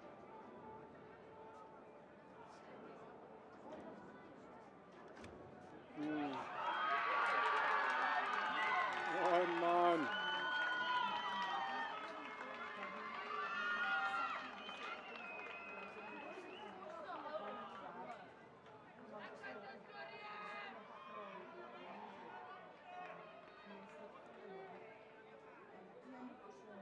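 Young men and spectators shout and cheer outdoors.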